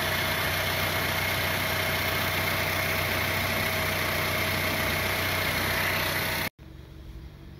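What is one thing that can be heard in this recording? A turbocharger spins with a steady high whine and hum.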